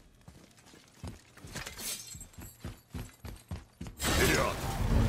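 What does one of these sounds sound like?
Heavy footsteps thud on a metal grate.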